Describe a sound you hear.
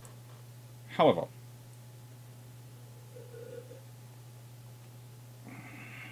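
A man sips a drink from a glass.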